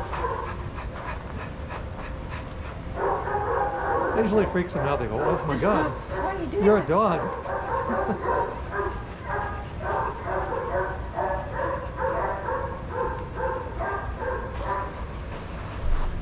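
Dogs pant nearby.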